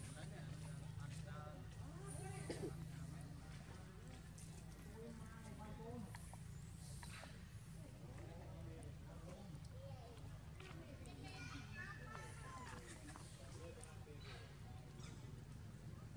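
A baby monkey squeaks in short high cries.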